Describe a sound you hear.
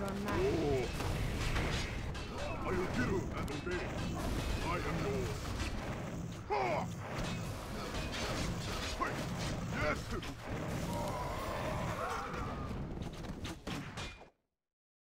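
Magic spells crackle and blast in a fantasy battle.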